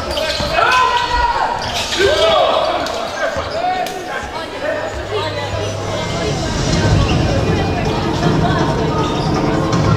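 A basketball thuds as it bounces on the floor.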